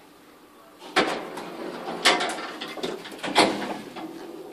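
Lift doors slide and thud shut.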